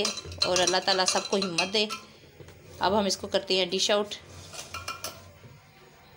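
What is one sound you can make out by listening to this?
A spoon clinks against a glass jug while stirring a drink.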